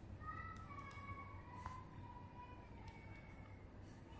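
A pen scratches briefly on paper.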